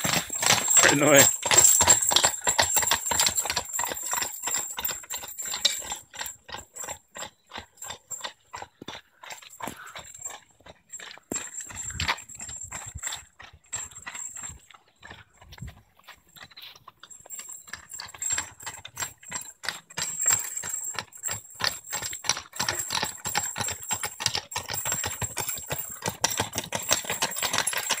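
Horse hooves clop on a gravel path.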